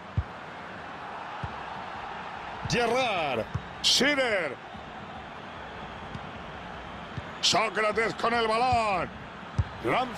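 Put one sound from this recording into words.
A football is kicked with short, dull thuds.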